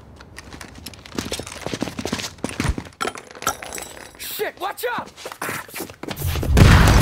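Submachine guns fire in rapid bursts.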